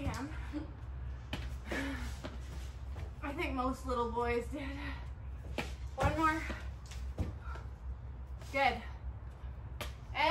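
Feet and hands thump softly on an exercise mat.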